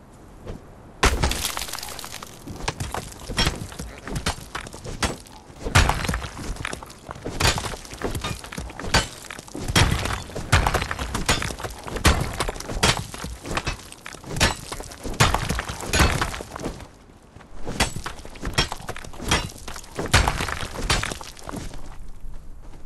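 A pickaxe strikes rock again and again, knocking loose stones.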